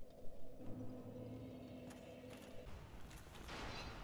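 Armoured footsteps clank on stone steps.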